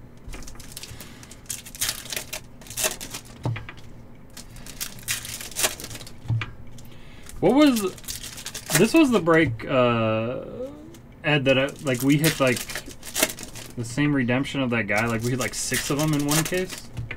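A foil card pack crinkles and rustles in hands.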